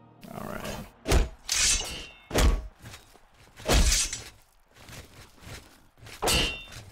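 Footsteps thud slowly on a stone floor.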